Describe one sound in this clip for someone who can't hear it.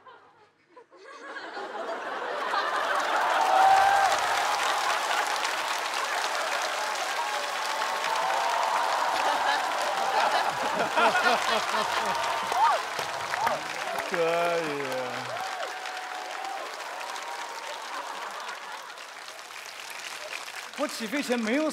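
A large audience laughs loudly.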